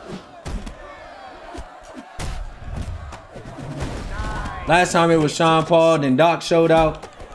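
Heavy punches land with thuds.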